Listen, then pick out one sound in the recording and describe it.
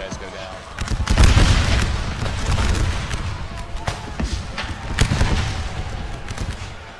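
A volley of musket fire crackles and booms.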